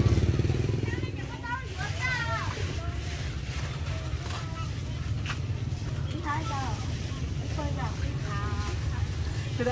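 Women talk casually nearby.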